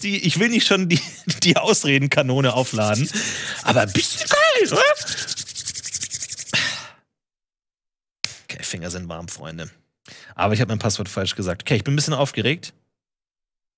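A young man talks and laughs with animation close to a microphone.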